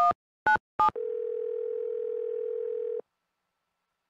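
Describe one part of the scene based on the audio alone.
A phone line rings once.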